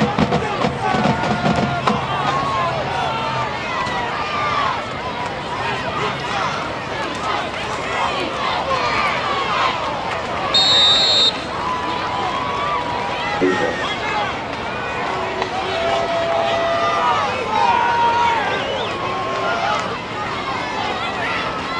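A crowd of spectators chatters and calls out loudly nearby.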